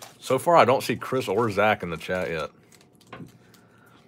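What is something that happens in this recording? A foil card pack crinkles as hands handle it.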